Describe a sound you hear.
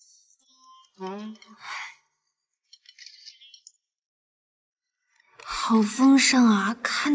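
A young woman speaks close by with delight.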